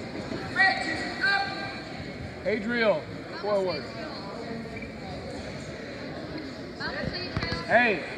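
Wrestling shoes squeak on a mat.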